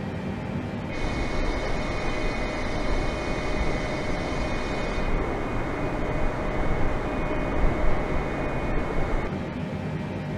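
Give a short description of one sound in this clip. Jet engines roar loudly with a high whine, heard from outside the aircraft.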